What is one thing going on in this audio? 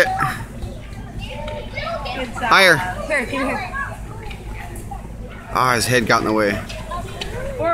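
Young children chatter and call out nearby outdoors.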